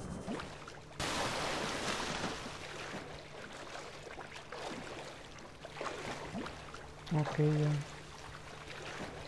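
Waves wash and lap around a small craft.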